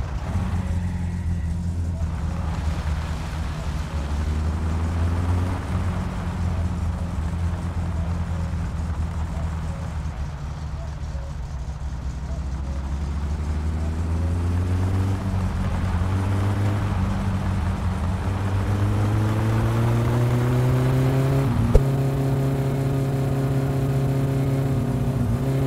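Tyres rumble on a road.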